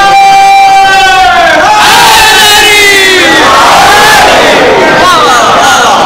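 A crowd of men calls out together in response.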